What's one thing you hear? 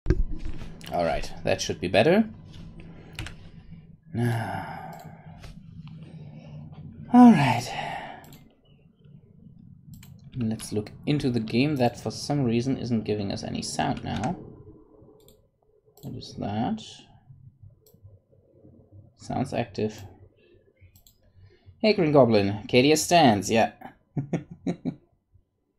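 A man talks calmly into a close microphone, pausing between phrases.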